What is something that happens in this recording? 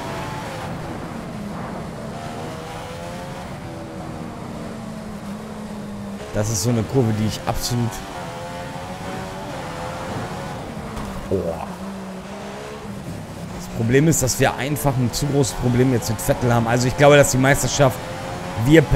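A racing car engine whines at high revs, rising and falling as gears shift.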